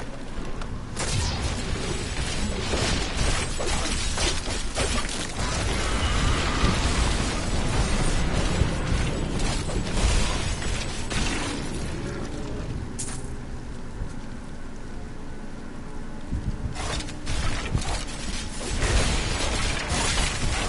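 Weapons clash and magic blasts burst in a busy fight.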